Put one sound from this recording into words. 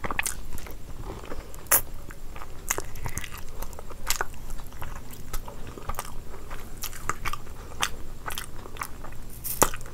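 A woman chews and smacks food loudly, close to a microphone.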